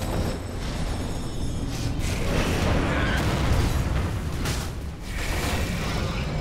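Magic blasts and clashing weapons crackle and thud in a battle.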